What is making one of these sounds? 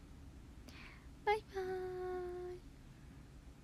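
A young woman speaks close by in a high, cheerful voice.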